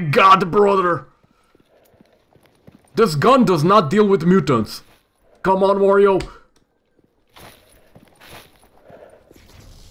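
Footsteps scuff on hard concrete.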